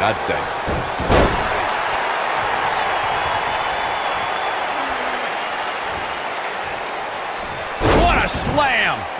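Heavy bodies slam down onto a wrestling mat with loud thuds.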